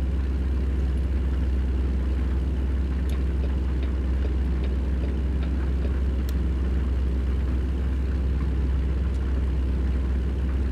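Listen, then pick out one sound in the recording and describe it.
Tyres roll steadily on a highway.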